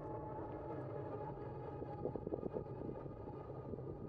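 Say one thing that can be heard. An electric bike whirs past close by.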